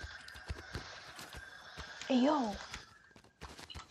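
Footsteps thud quickly on grass.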